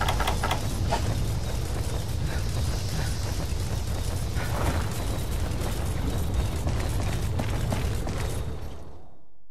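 Weapon blows strike and clang in a video game fight.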